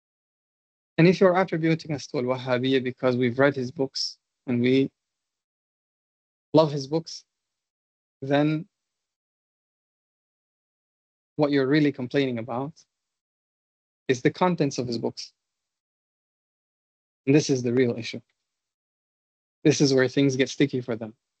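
A man speaks calmly in bursts with pauses, heard through an online call.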